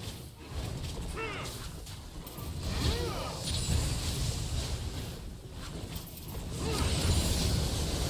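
Magic spells burst and whoosh in a fast fight.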